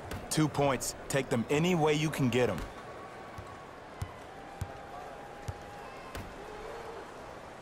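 A basketball bounces on a hardwood court.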